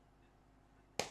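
A player strikes a volleyball with a hard slap.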